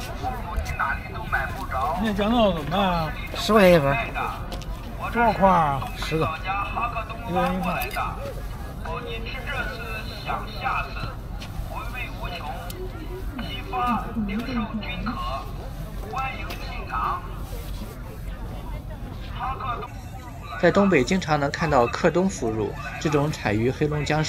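A man talks calmly up close.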